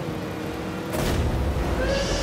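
A loud burst booms as a goal explodes.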